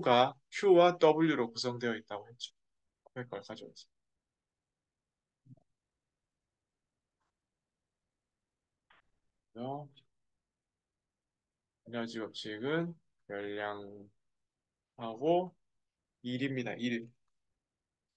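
A young man speaks calmly into a microphone, explaining in short bursts with pauses.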